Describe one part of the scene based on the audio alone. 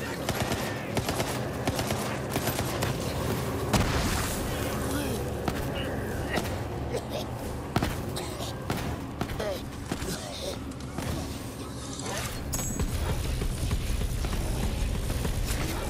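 Gunfire bursts in rapid volleys.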